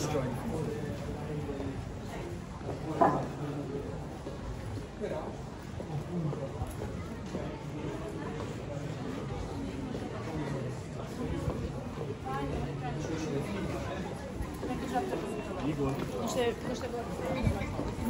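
A crowd of people talks in a murmur nearby outdoors.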